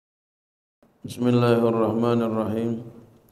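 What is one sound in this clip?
A man chants into a microphone through a loudspeaker, in an echoing room.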